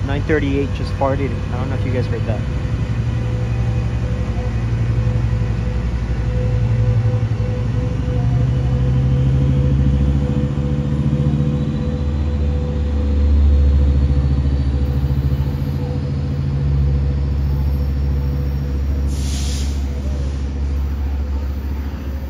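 A diesel locomotive engine rumbles deeply and steadily close by.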